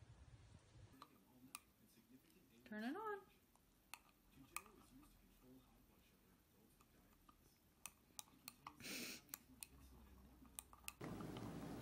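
A dog's teeth click against a small metal tool.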